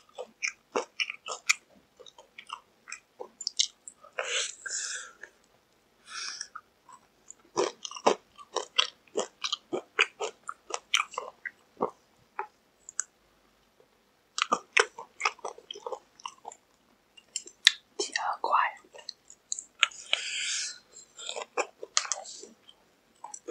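A young man chews and smacks his lips close to a microphone.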